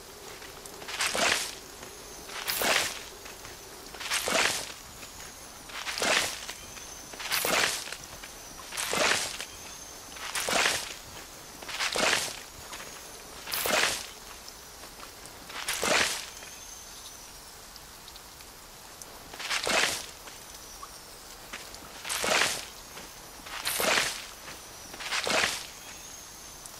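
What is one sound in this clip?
Plants are pulled from soil with a soft rustling whoosh, again and again at a steady pace.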